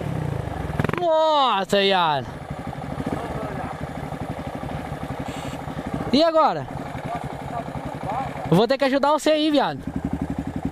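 A single-cylinder dirt bike idles close by with a steady thump.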